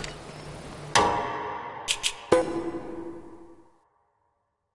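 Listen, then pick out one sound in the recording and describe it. Short chimes sound as a menu is paged through.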